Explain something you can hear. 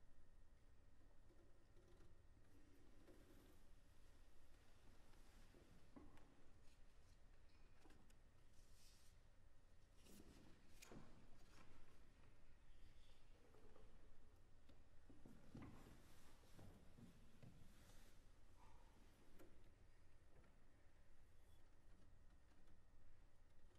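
A cello plays softly in a large hall.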